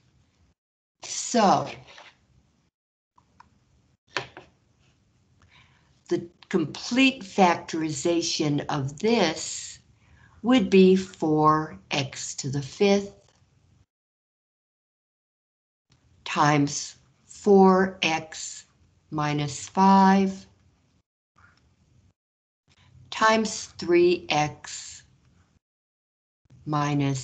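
A man explains calmly through an online call.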